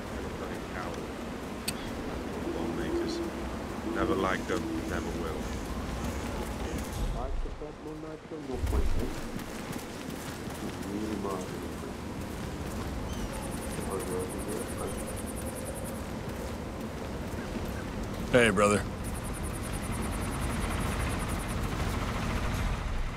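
Footsteps crunch on gravel at a steady pace.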